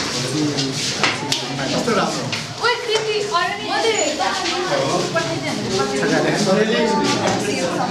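A middle-aged man speaks cheerfully and laughs.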